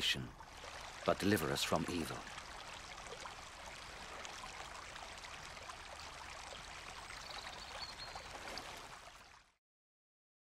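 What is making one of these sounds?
A stream rushes and splashes over rocks.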